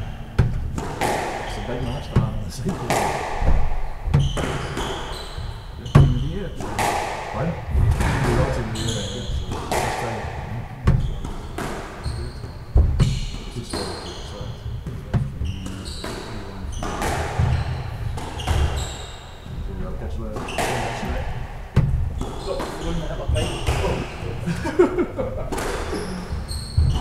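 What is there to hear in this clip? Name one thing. A squash ball smacks hard against the walls, echoing in a bare hall.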